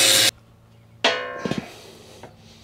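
A steel plate clangs as it is set down.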